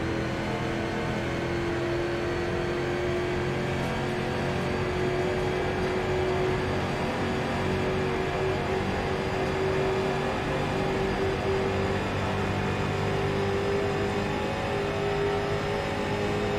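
A race car engine roars steadily at high speed, its pitch slowly creeping up.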